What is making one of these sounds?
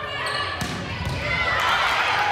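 A crowd cheers in the stands.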